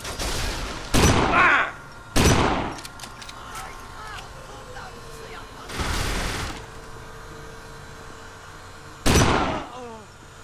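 Loud gunshots blast and echo.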